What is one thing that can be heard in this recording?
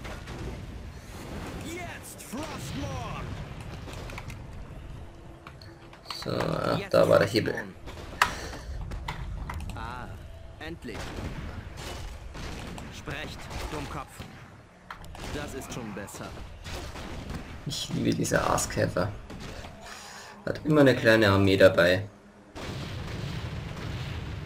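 Spells explode with fiery booms.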